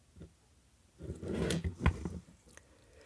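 Plastic parts click and rustle as they are handled.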